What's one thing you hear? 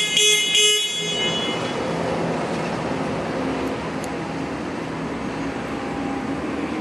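An electric lift motor hums steadily.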